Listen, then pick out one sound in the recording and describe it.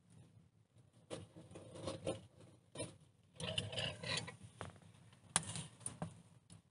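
Firewood knocks and clatters as it is pushed into a stove.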